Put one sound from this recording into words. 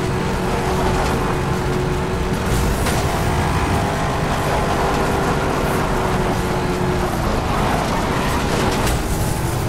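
Tyres skid and crunch on gravel.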